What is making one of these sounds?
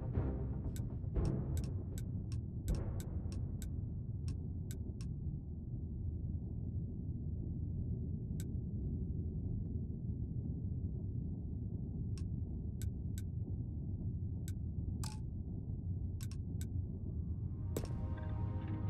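Short electronic clicks tick as menu selections are made.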